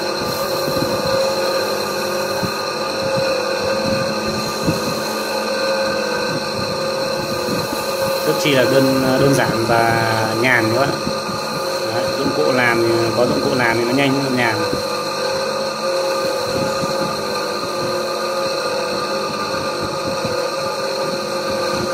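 A small metal piece grinds against a spinning wheel.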